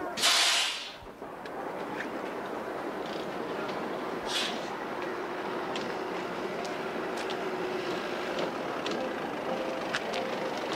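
A bus engine idles.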